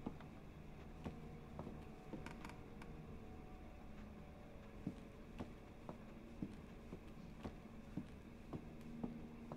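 Footsteps tread slowly across a hard floor.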